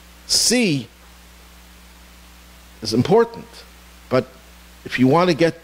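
An elderly man speaks with animation into a microphone, in short bursts with pauses.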